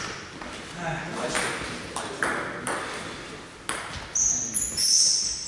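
A table tennis ball clicks against bats and the table in an echoing hall.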